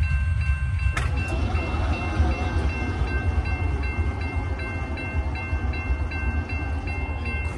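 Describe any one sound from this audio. A crossing gate arm clunks and whirs as it lifts.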